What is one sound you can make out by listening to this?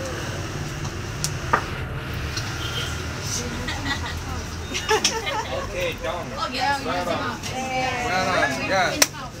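Several people chat in a busy room.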